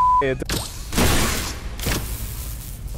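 An electric beam zaps and crackles briefly.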